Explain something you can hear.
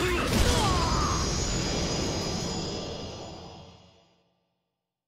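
Blows land with heavy impacts in a fight.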